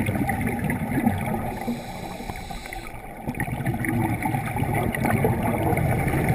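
Scuba exhaust bubbles gurgle and rumble underwater.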